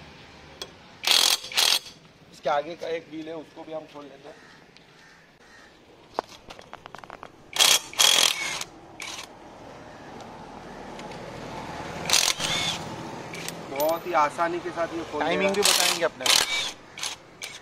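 A power impact wrench rattles loudly in short bursts.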